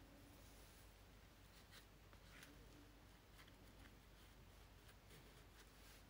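Paper rustles as a strip is pressed down by hand.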